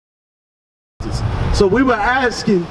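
A man speaks loudly into a microphone.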